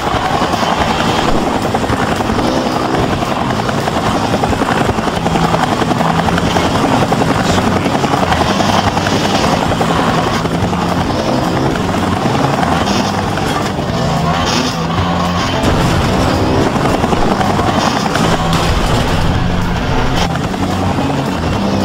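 A motorbike engine revs and whines.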